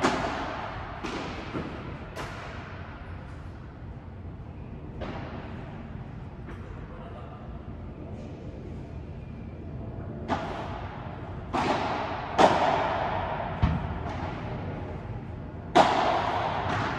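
Padel rackets strike a ball with sharp pops that echo through a large hall.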